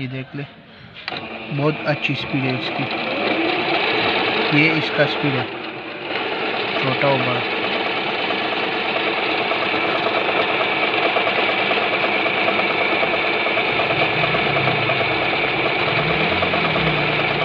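A sewing machine runs steadily, its needle stitching rapidly.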